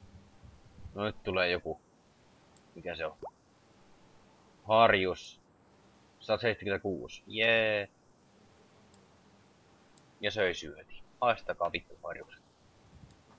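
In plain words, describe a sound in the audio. A young man talks into a microphone in short bursts, with animation.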